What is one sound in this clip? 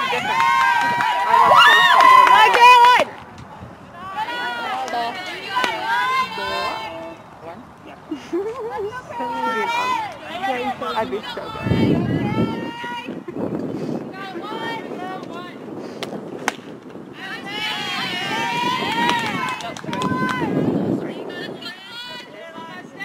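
Young women chant and cheer loudly outdoors.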